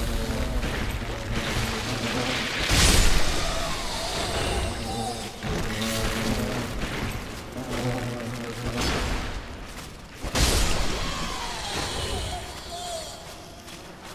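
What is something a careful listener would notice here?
Metal armour clanks with each step.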